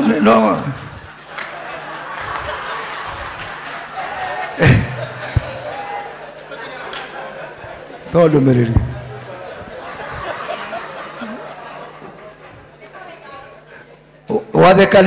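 A crowd laughs and chatters.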